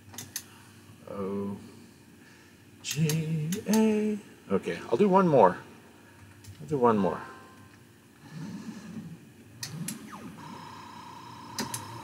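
An arcade game plays electronic beeps and a short tune.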